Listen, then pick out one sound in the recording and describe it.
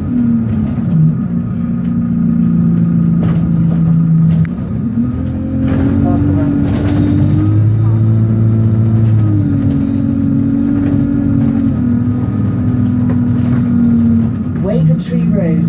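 A vehicle engine hums steadily from inside the car, shifting pitch now and then.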